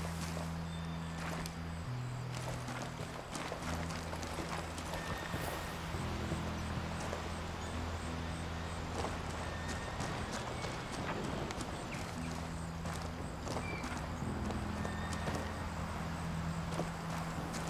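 Footsteps crunch on dirt and gravel.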